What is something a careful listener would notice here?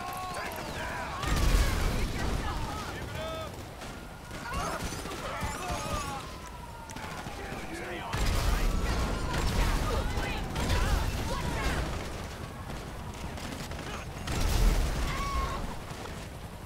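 Police sirens wail in the distance.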